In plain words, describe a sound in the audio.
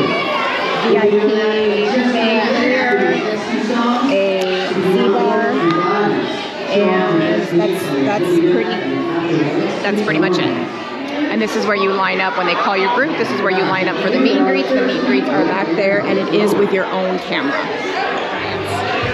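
A woman talks calmly and closely into a microphone.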